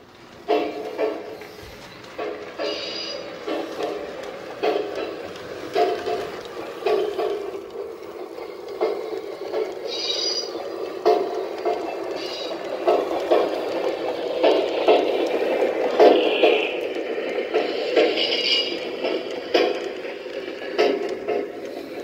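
A small model train rumbles along a track, growing louder as it comes close and passes.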